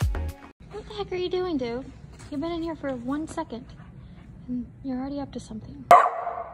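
A dog yowls and whines in rising and falling tones.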